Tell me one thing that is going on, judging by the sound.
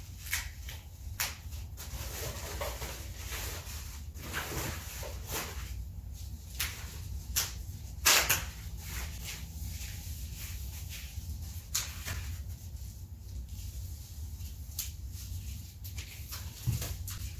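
Plastic packaging crinkles and rustles as someone handles it.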